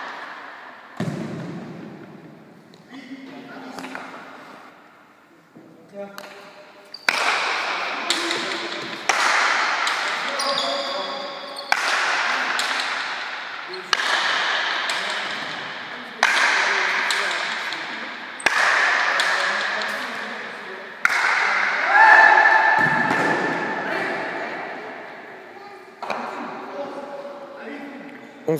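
A hard ball smacks loudly against a wall and echoes through a large hall.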